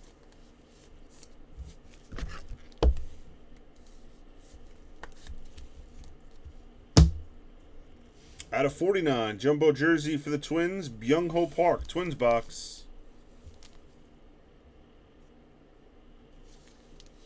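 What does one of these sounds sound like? A plastic card sleeve crinkles and rustles in handling.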